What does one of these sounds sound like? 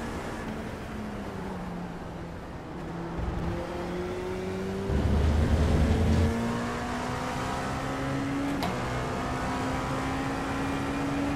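A racing car engine roars and climbs in pitch through gear changes.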